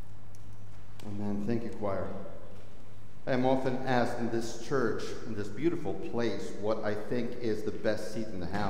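A middle-aged man speaks calmly through a microphone in a large echoing hall.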